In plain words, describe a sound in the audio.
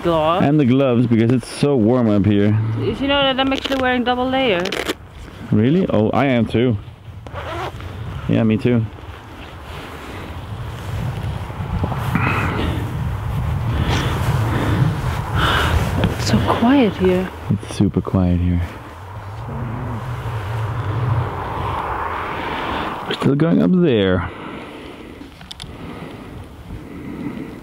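Strong wind blows and buffets outdoors.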